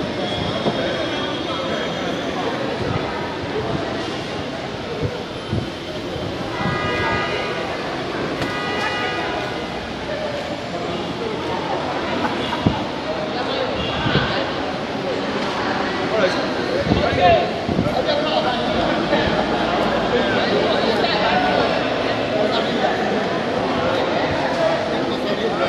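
A crowd of men and women chatter and call out in an echoing hall.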